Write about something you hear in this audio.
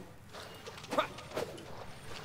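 A sword whooshes through the air in a quick slash.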